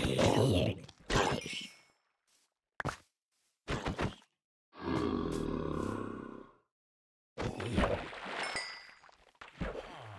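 A zombie groans low nearby.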